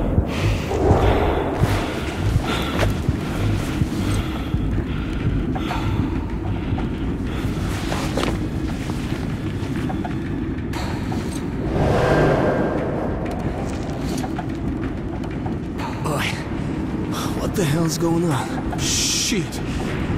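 A rail cart rumbles and rattles steadily along a track.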